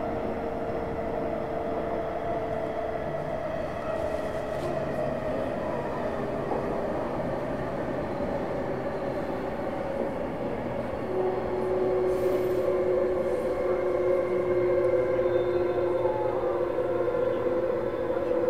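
A train rumbles along steadily, with a motor humming that rises in pitch.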